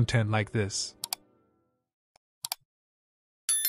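A mouse button clicks a few times.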